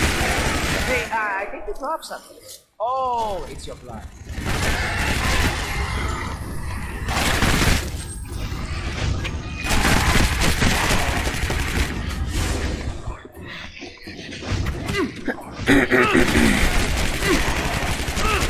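Creatures shriek and growl.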